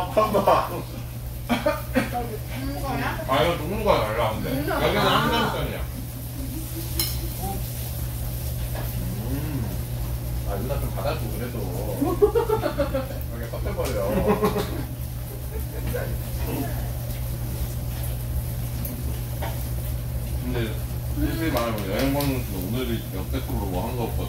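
Young men and women talk nearby.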